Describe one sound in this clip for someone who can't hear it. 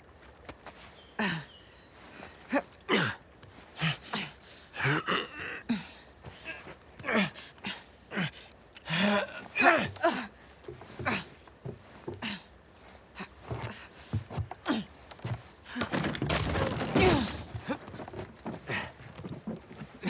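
A young woman talks with animation.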